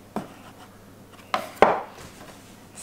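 A metal bench scraper scrapes across a wooden board.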